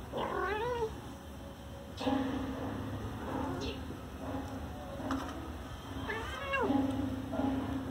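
A kitten mews in high-pitched cries.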